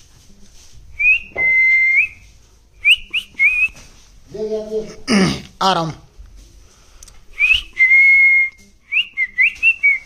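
A parrot gives short, high whistles and chirps close by.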